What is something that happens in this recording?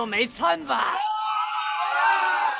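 A crowd of men shouts a battle cry.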